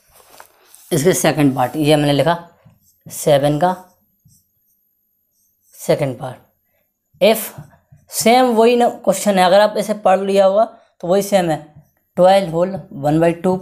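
A young man speaks calmly and clearly close by.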